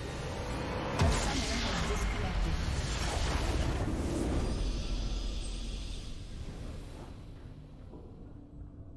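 A triumphant game fanfare swells and slowly fades.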